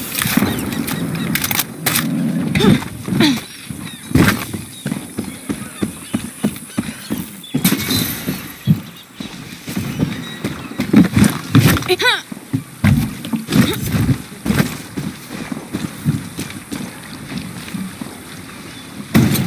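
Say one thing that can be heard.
Footsteps crunch steadily over dirt and sand.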